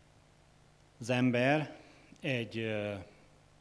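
A man speaks slowly and solemnly through a microphone.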